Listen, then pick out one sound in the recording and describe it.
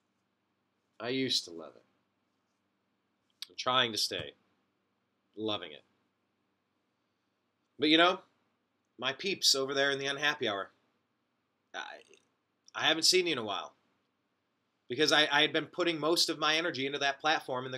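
A young man talks close to a microphone in short, animated bursts with pauses.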